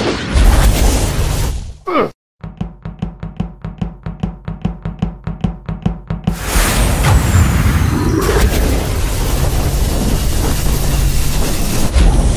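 Laser beams fire with a buzzing hum.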